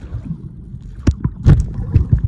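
Air bubbles gurgle and burst in a quick rush underwater.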